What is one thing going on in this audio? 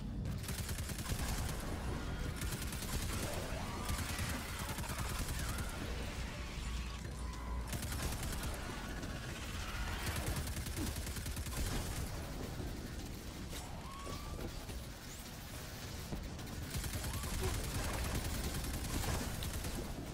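Electric blasts crackle and burst loudly.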